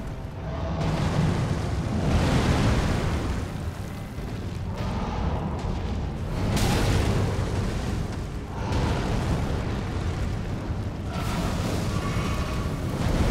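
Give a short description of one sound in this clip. A giant's heavy blows crash and boom against the ground.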